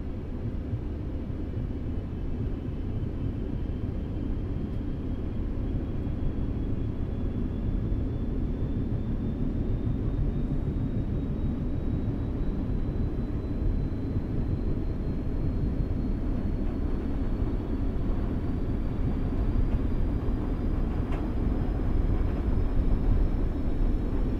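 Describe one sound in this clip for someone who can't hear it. A train's motor whines, slowly rising in pitch as it speeds up.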